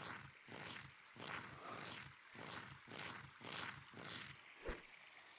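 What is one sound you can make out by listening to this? Footsteps clatter on a wooden ladder in a quick, steady rhythm.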